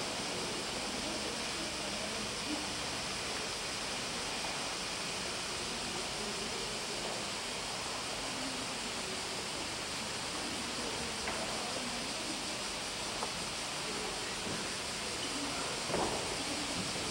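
A man speaks slowly over loudspeakers in a large echoing hall.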